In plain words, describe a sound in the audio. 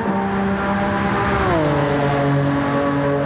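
A race car speeds close past, its engine pitch dropping sharply.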